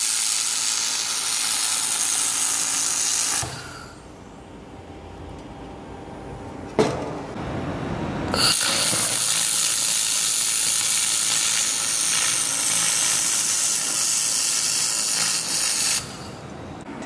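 A laser welder hisses and crackles as sparks fly.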